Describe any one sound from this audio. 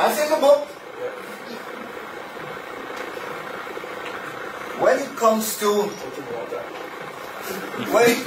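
An elderly man speaks with animation, pausing between phrases.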